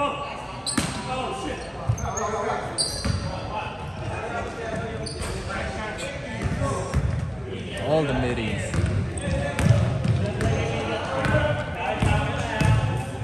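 Men call out across an echoing gym.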